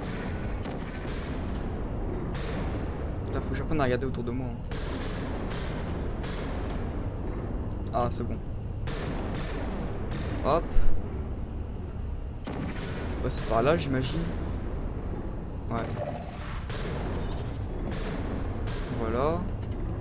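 A portal gun fires with sharp electronic zaps.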